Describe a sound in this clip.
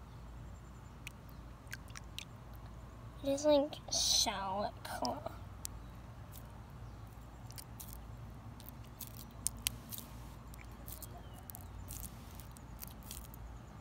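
Fingers squish and squelch in a thick, wet paste.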